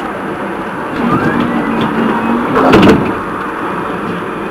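A tram pulls in alongside with a rising whine and a squeal of wheels.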